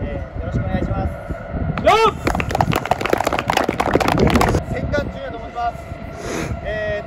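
Young men speak outdoors, their voices carrying in the open air.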